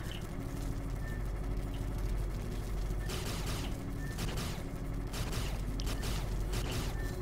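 An arcade game gives soft, short electronic beeps.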